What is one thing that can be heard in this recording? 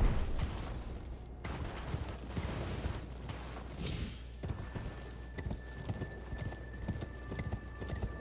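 Horse hooves thud rapidly on stone.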